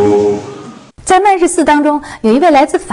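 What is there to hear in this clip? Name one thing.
A woman speaks clearly and with animation into a microphone.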